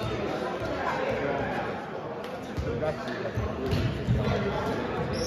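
Volleyballs thump against hands and the floor in a large echoing gym.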